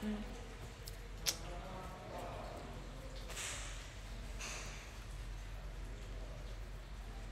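A young woman speaks softly and close to the microphone.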